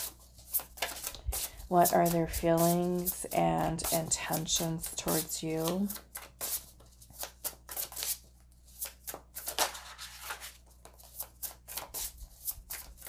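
Playing cards shuffle and riffle with quick, crisp snaps close by.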